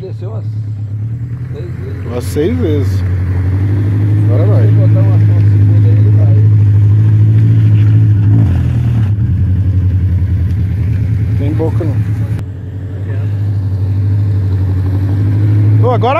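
A car engine roars and strains at low revs.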